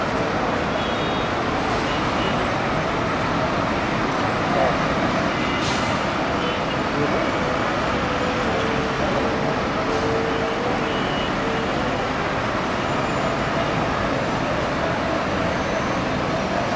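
Busy city traffic rumbles steadily from below.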